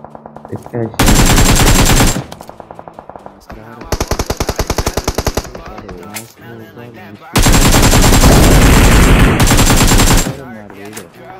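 Rapid automatic rifle fire rattles in loud bursts.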